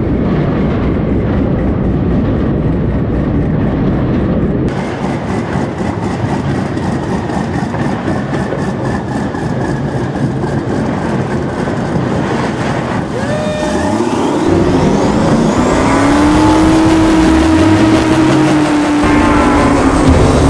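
An airboat's engine and propeller roar loudly.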